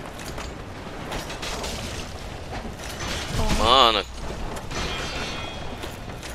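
A sword slashes and thuds against a creature.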